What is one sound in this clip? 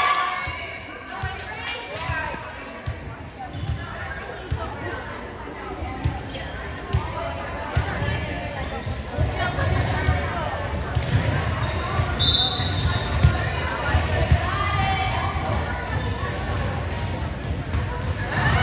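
Players and spectators chatter and call out, echoing through a large gym.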